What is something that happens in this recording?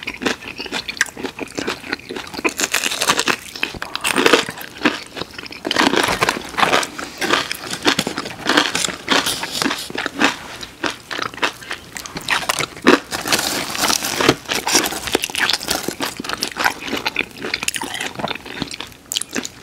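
Crunchy breaded chicken is chewed close to the microphone.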